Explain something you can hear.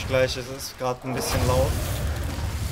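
A huge creature growls deeply and loudly.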